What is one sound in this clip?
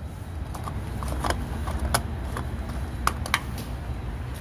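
A fuel cap clicks and rattles as it is unscrewed.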